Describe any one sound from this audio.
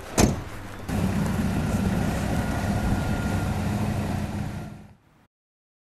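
A car's tyres crunch slowly through snow.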